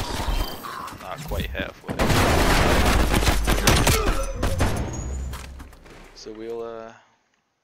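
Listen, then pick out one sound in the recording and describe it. Gunshots fire rapidly, close by, in a game.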